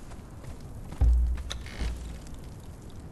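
A wooden door thuds open.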